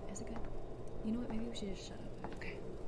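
A young woman speaks softly into a microphone.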